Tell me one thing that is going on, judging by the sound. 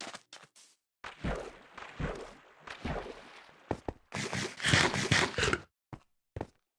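Water splashes and sloshes with swimming strokes.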